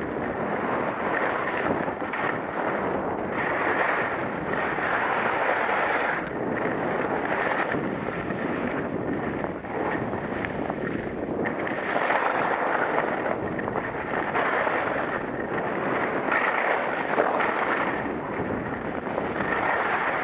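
Skis hiss and scrape over packed snow, rising and falling with each turn.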